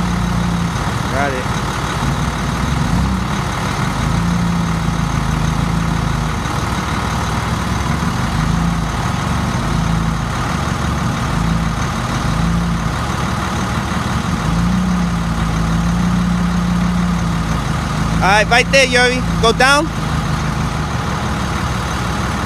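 A forklift engine runs close by and revs up and down.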